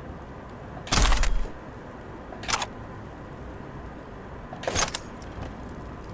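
Game sounds chime as items are picked up.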